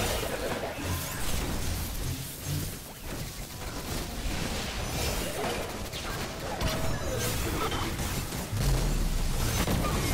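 Electric blasts crackle and buzz loudly.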